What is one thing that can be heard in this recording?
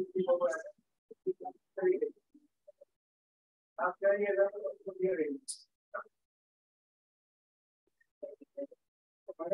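A young woman explains calmly through an online call.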